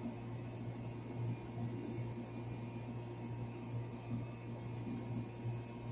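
An air conditioner unit hums steadily and loudly close by.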